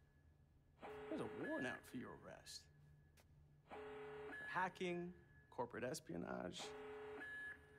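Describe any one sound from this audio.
A second man talks with animation.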